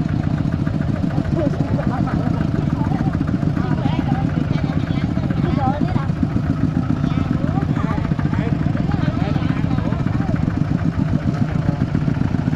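Women talk nearby.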